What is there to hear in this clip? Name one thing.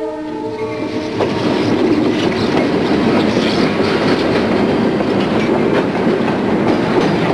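A train rumbles loudly past close by.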